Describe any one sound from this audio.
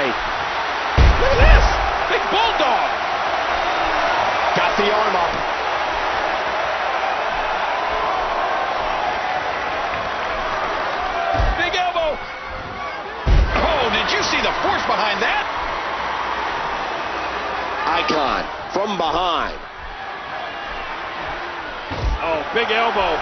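Heavy thuds ring out as bodies slam onto a wrestling ring's mat.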